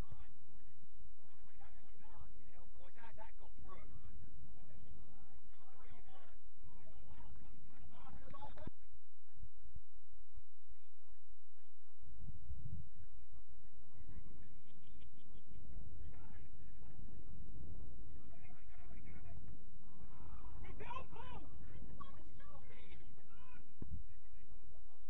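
Distant men shout across a field.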